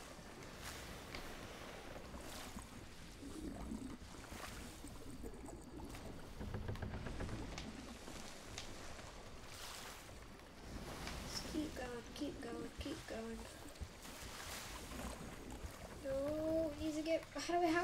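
Ocean waves churn and wash against a wooden ship.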